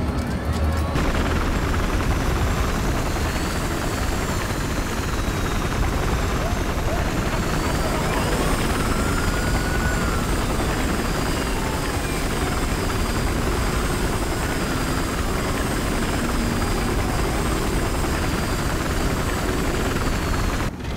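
A helicopter's rotor thumps and its engine roars steadily.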